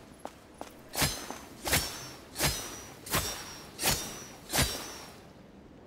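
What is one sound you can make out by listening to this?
Blade strikes whoosh and clash in a quick series.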